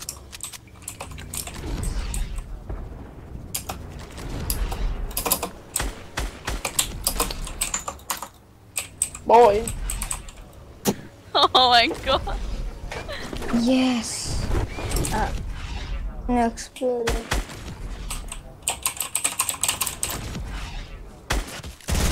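Wooden building pieces snap into place with quick, repeated knocks.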